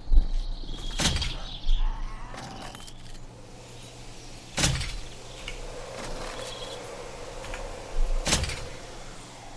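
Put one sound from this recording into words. A crossbow fires with a sharp snap, several times.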